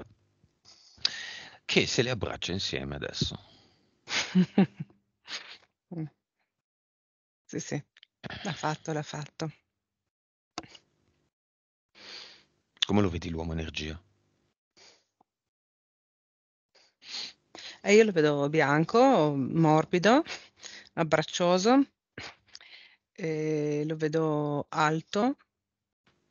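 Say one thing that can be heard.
A man speaks with animation close to a headset microphone.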